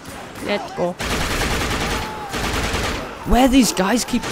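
A gun fires loudly in quick bursts.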